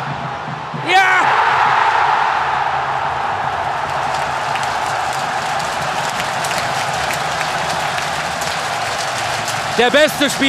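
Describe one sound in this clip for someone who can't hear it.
A stadium crowd bursts into a loud roar of cheering.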